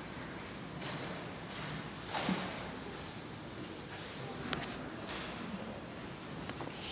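A man speaks calmly over a loudspeaker in a large echoing hall.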